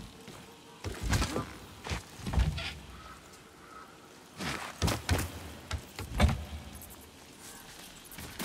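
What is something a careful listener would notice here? A wooden ladder knocks and creaks as someone climbs it.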